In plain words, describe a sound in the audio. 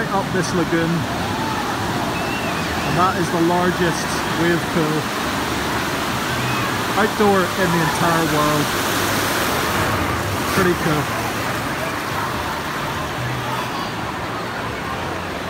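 Waves break and wash steadily across a shallow pool.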